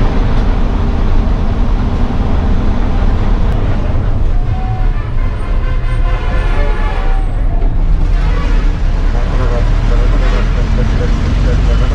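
A bus engine rumbles steadily from inside the cabin.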